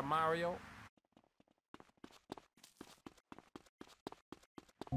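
Quick footsteps slap on hard ground as a man runs.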